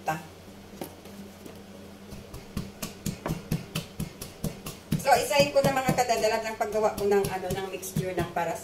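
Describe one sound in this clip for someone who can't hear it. A spoon taps and scrapes against a cooking pot.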